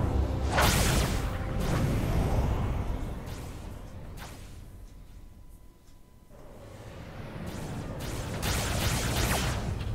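Deep rumbling music with whooshing swells plays, fading down in the middle and swelling again.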